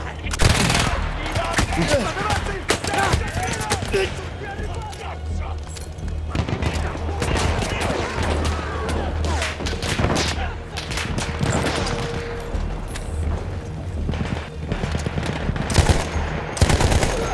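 A low steady rumble of battle fills the air.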